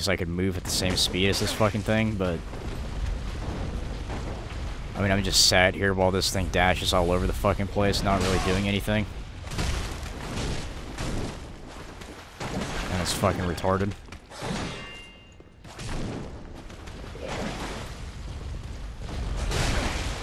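Heavy armoured footsteps thud on stone.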